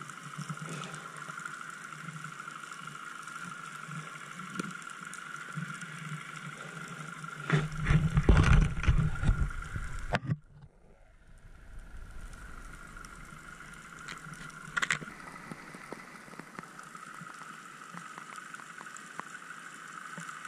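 Water crackles and hisses steadily all around underwater.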